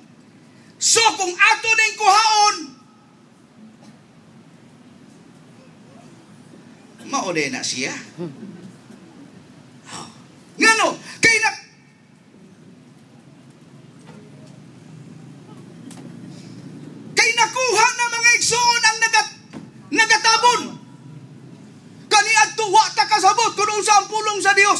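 A man speaks with animation through a microphone in a slightly echoing hall.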